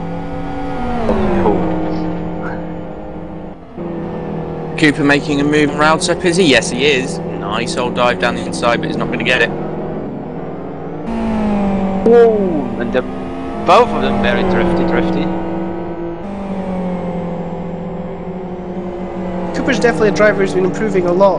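Racing car engines roar and whine, dropping in pitch at each gear change.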